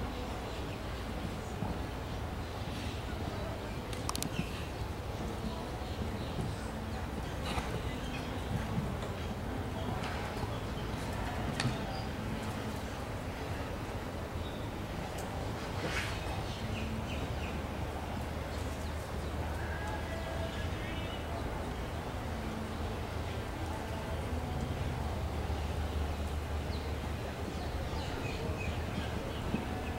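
Hooves thud on soft sand as a horse canters.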